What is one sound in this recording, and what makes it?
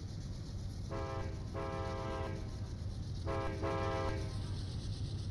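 A train horn sounds twice in the distance.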